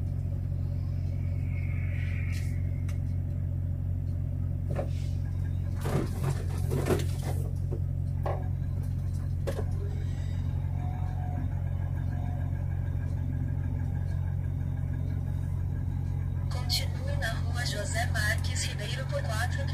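A heavy truck engine idles with a low steady rumble close by.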